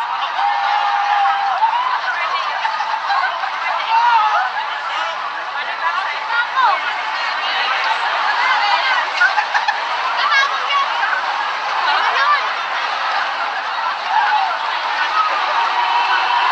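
A large crowd of people chatters and calls out outdoors.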